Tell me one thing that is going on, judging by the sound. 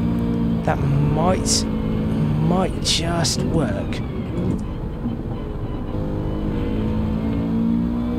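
A racing car engine drones loudly, easing off and then pulling again.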